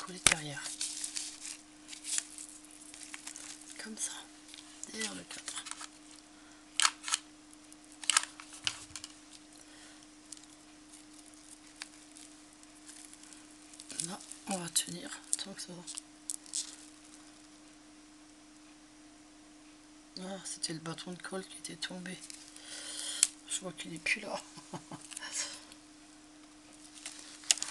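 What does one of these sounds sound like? Stiff cardboard rustles and taps as hands handle it up close.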